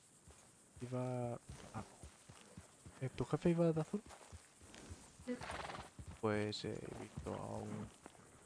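A horse's hooves thud slowly on soft ground.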